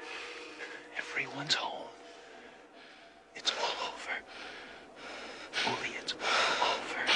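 A man speaks softly and closely.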